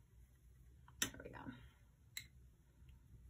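A paintbrush clinks against a water jar as it is rinsed.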